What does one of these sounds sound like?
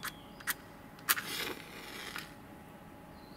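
A match strikes and flares.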